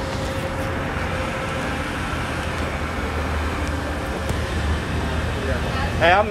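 Traffic hums steadily on a street outdoors.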